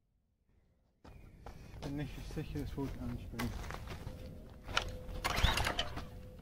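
A small petrol engine sputters and then runs with a loud, rough rattle.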